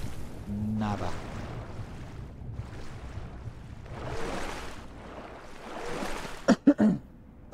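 Water churns and bubbles as a swimmer strokes underwater.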